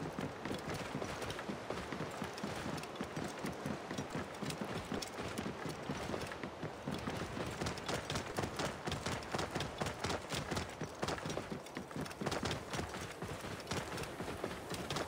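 Hooves thud in a steady rhythm on sand and gravel.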